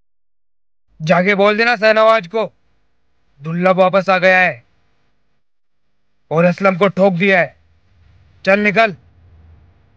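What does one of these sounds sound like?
A young man speaks loudly and angrily nearby.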